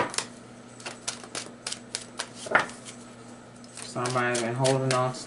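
Playing cards riffle and tap as they are shuffled by hand.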